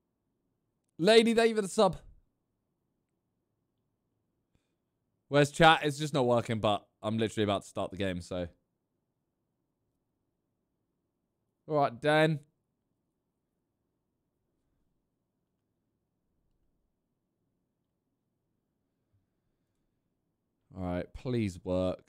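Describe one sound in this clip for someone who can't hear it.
A young man speaks in short bursts into a close microphone, with long silences between.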